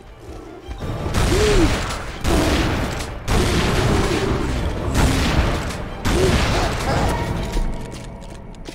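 Pistol shots ring out, echoing off stone walls.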